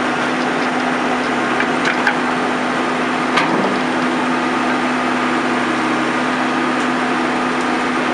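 A backhoe engine rumbles steadily nearby.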